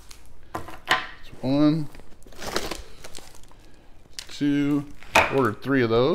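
A plastic package thuds onto a hard counter.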